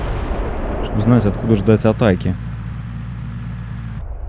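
A vehicle-mounted gun fires rapid bursts.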